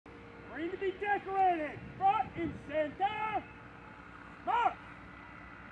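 A man shouts drawn-out commands outdoors.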